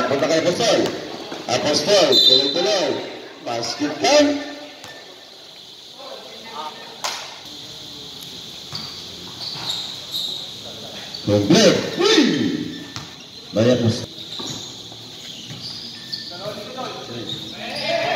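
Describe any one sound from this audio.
A basketball bounces on a concrete court.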